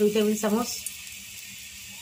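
Oil pours into a metal pan.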